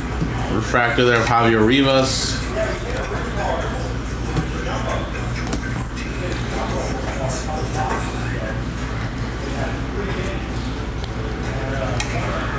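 Trading cards slide and rustle between fingers.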